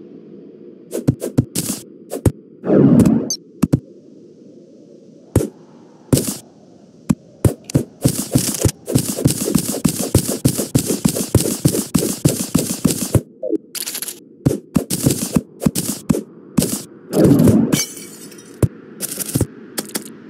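A pickaxe chips at rock with quick repeated knocks.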